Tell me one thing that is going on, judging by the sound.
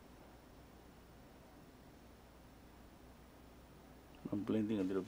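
A brush softly strokes across a canvas.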